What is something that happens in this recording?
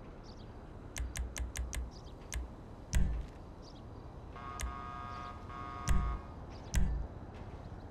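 Short game menu clicks and beeps sound as options are selected.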